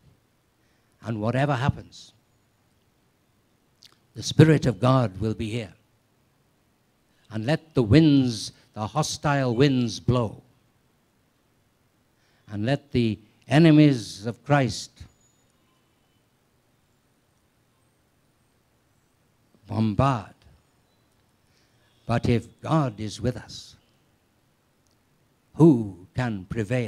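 An elderly man speaks slowly through a microphone, with long pauses.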